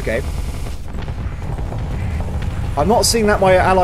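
Laser weapons fire and zap in a rumbling space battle.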